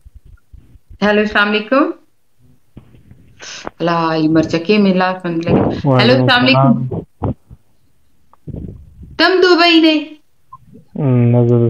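A woman sings with feeling, close up.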